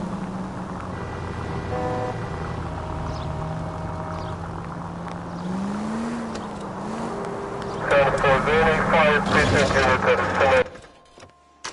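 A car engine hums steadily as the car drives along a street.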